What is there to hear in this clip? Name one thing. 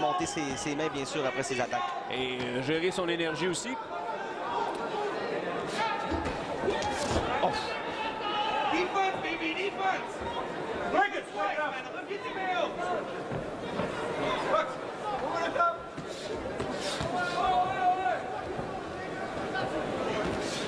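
A crowd cheers and murmurs in a large hall.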